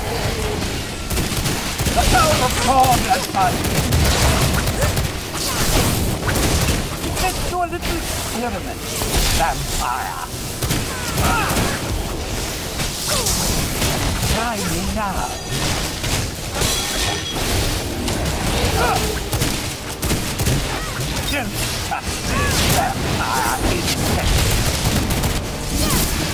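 Blows and magic blasts crash and thud over and over.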